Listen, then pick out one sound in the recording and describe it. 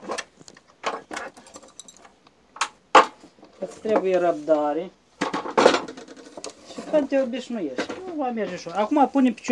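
Wooden pieces knock together as they are fitted by hand.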